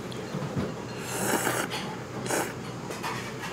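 A young woman slurps noodles loudly up close.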